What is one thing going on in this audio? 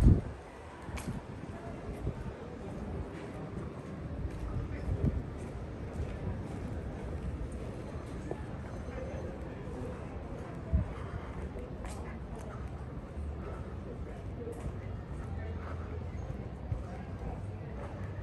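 A quiet street hums softly outdoors at night.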